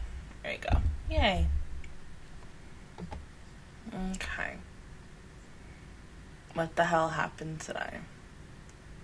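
A young woman speaks casually into a close microphone, in short bursts.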